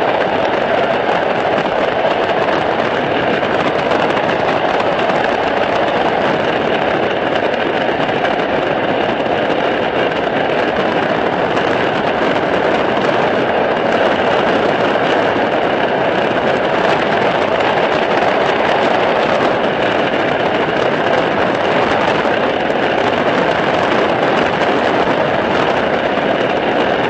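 A light aircraft's piston engine drones in flight.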